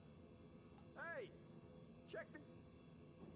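A game menu chimes softly.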